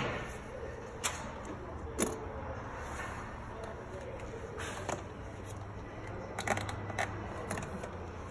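A wrench clicks and clanks against metal.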